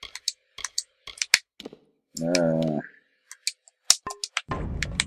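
Short menu clicks tick in quick succession.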